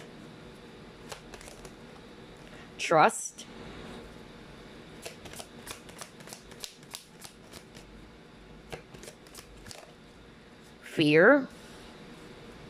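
A card is laid down on a wooden table with a light tap.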